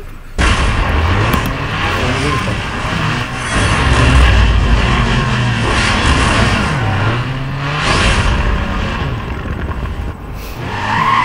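Car engines rev and roar up and down.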